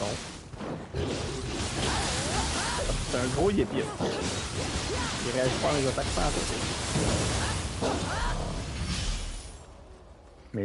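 Fiery blasts roar and crackle during the fight.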